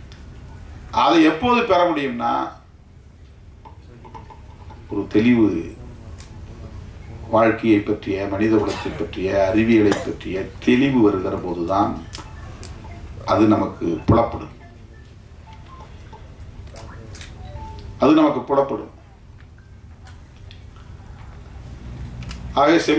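A middle-aged man speaks with animation into a microphone over loudspeakers, pausing between phrases.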